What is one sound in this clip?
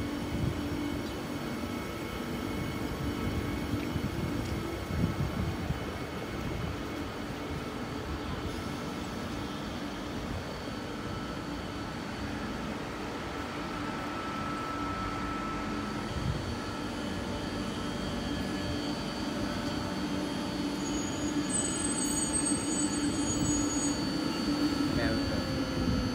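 A train's motors hum steadily.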